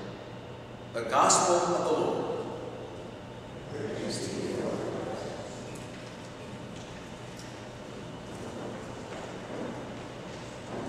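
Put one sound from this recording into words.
A man speaks slowly through a microphone in a large echoing hall.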